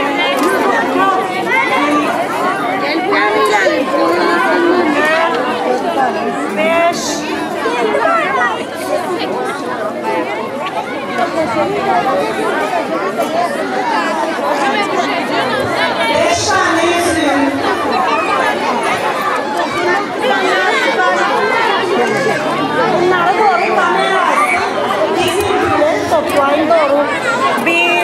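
A crowd of people talks and chatters loudly all around, outdoors.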